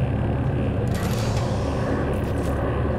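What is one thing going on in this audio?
A metal crate lid clanks open.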